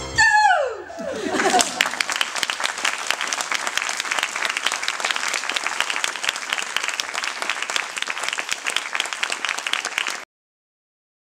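An audience applauds with steady clapping.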